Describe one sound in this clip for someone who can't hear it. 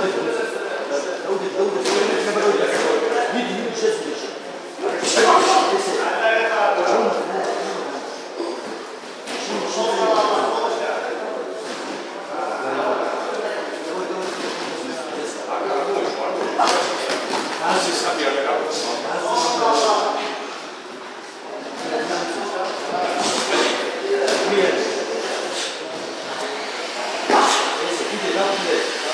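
A man calls out instructions in a large echoing hall.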